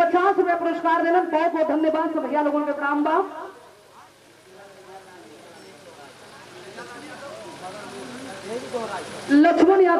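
A woman sings loudly through a microphone.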